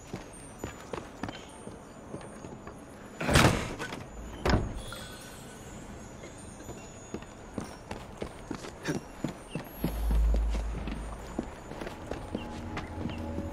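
Footsteps patter quickly across a tiled roof.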